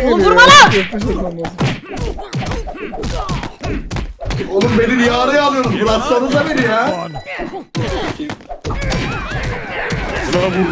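Punches thud in a video game boxing match.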